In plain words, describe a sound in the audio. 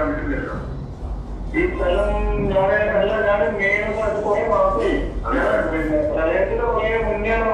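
A middle-aged man speaks with animation into microphones.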